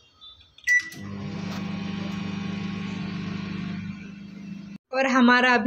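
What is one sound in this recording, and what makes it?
A microwave oven hums steadily as it runs.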